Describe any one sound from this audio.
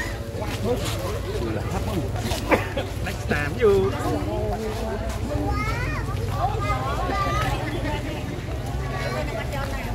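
A crowd of people chatter and call out nearby outdoors.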